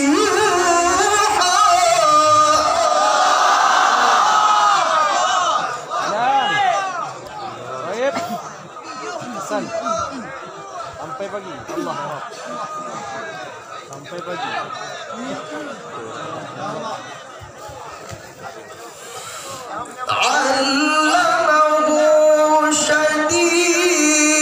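A young man chants melodically into a microphone, heard through loudspeakers.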